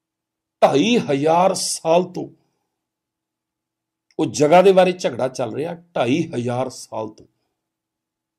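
A middle-aged man speaks emphatically and close to a microphone.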